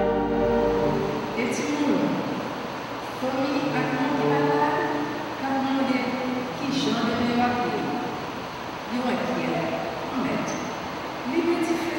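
A woman reads aloud calmly through a microphone in an echoing room.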